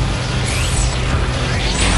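A small explosion bursts in a cartoonish game effect.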